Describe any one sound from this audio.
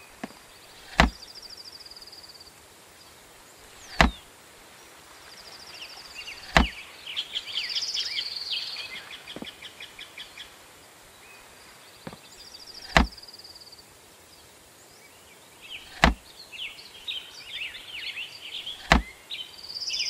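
Sharp clicks sound as a storage menu opens and closes.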